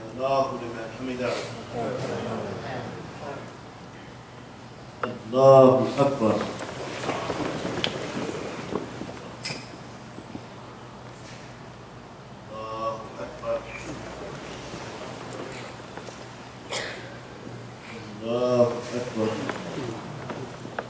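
A man calls out in a loud, drawn-out chant in an echoing room.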